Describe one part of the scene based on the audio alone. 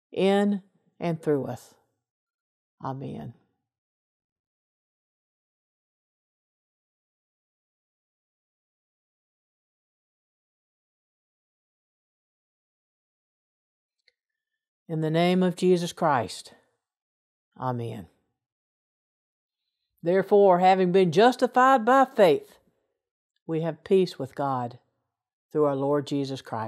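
An elderly woman speaks calmly over an online call, with long pauses.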